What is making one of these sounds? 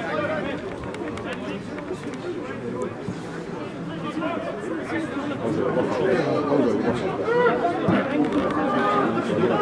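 A crowd of spectators murmurs and chatters in the distance.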